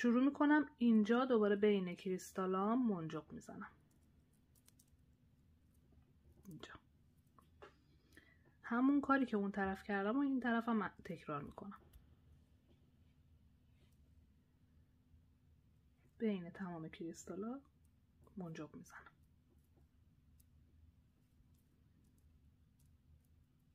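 Small glass beads click softly against each other.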